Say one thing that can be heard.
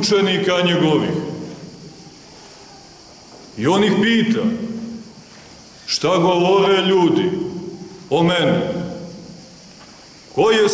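A man chants in sung phrases with pauses in between, echoing in a large hall.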